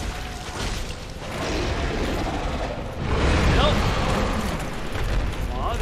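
A large monster roars with a deep rumble.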